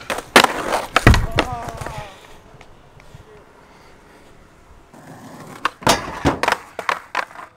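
Skateboard wheels roll and clatter on pavement.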